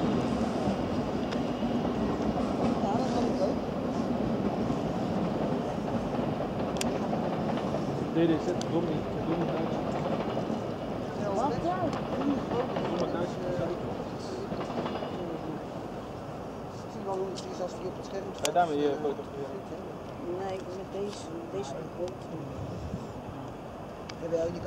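Trains rumble along the tracks at a distance.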